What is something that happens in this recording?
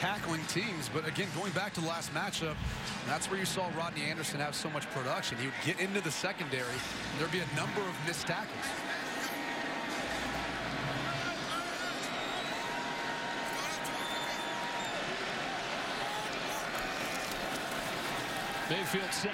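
A large crowd roars and cheers in a big echoing stadium.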